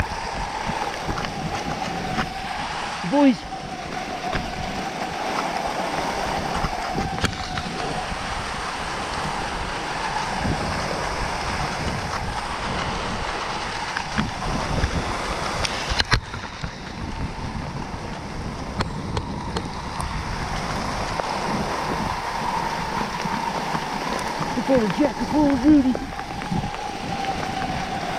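Skis hiss steadily over packed snow.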